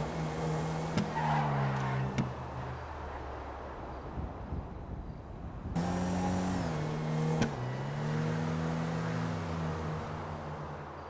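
A car engine hums and revs, rising and falling in pitch.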